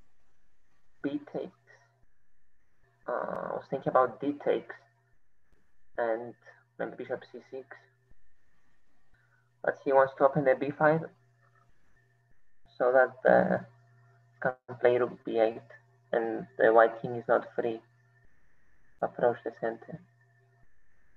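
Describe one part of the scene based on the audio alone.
A boy talks calmly into a microphone over an online call.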